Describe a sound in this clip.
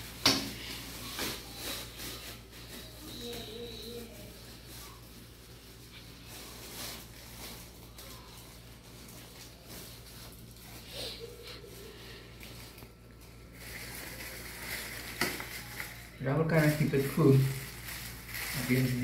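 Thin plastic sheeting crinkles and rustles as hands handle it.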